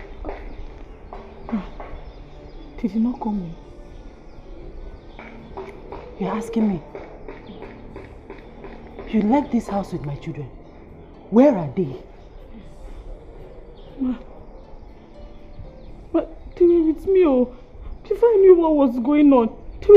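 A young woman speaks with emotion, close by.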